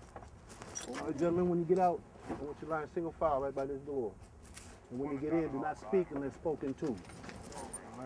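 A man gives firm instructions outdoors.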